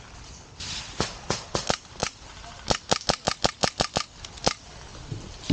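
An airsoft rifle fires a rapid series of sharp shots.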